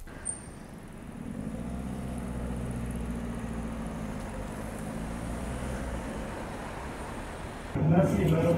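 A car engine hums as a car drives past in the street.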